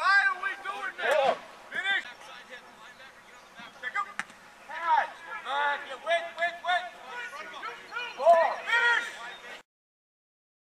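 Young men shout and call out from a distance outdoors.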